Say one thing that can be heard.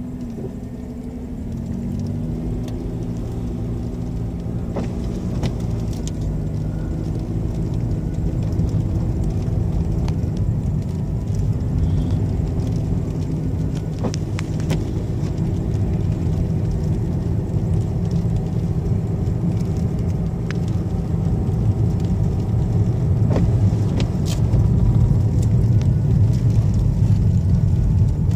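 Tyres crunch and hiss over packed snow.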